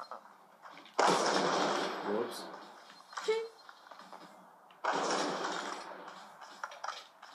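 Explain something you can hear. Gunfire bursts from a video game play through a television speaker.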